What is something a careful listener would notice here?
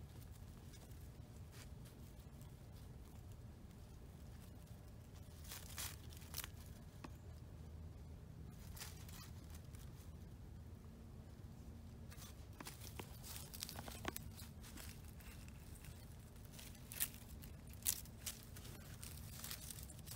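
An armadillo rustles and scratches through dry leaves.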